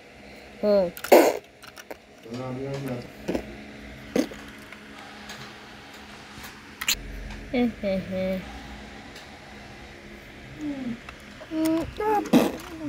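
Small plastic toy pieces click and rattle as they are handled.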